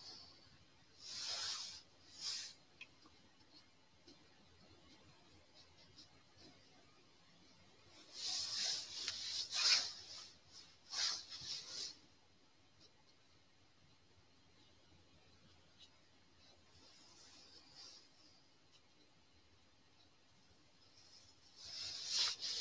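A paintbrush scratches and swishes across a canvas in short bursts.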